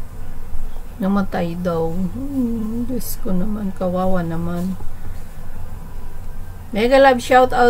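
A middle-aged woman speaks over an online call.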